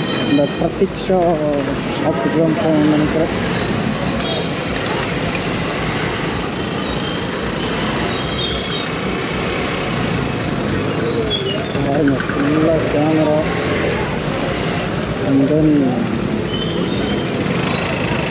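Traffic hums and rumbles all around on a busy street.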